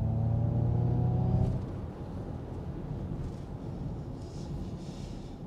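A car engine drones low from inside the cabin.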